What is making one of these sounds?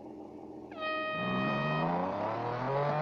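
A race car engine revs loudly at launch.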